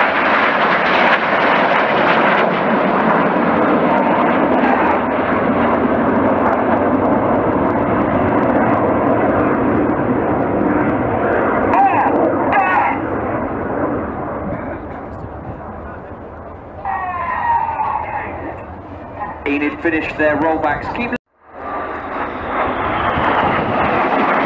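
Several jet trainers roar overhead in formation.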